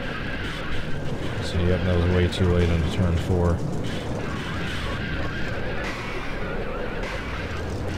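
Cars crash and scrape against each other and a wall.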